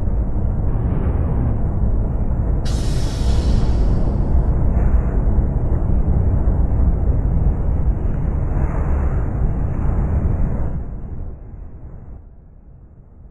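A bus engine idles with a low, steady rumble, then fades away.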